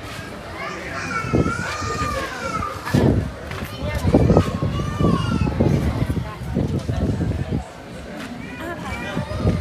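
A young woman shouts and exclaims excitedly.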